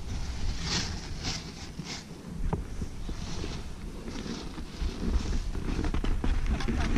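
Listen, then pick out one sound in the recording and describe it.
Wind rumbles against a microphone outdoors.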